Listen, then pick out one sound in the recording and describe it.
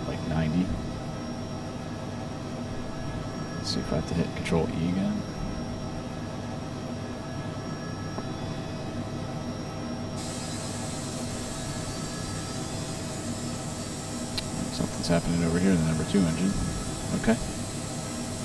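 A helicopter engine hums steadily.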